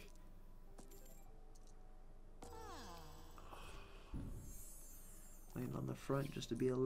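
Electronic slot machine chimes and jingles play.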